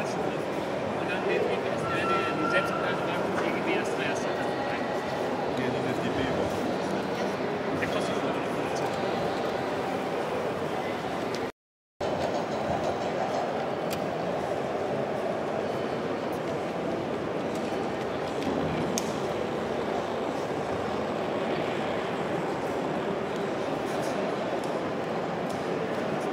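A crowd of visitors murmurs in a large hall.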